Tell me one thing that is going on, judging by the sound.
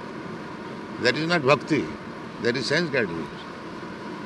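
An elderly man speaks in a drawn-out voice through a microphone.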